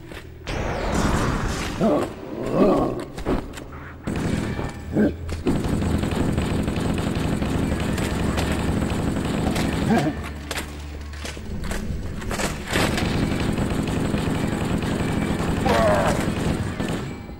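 An alien creature growls and roars.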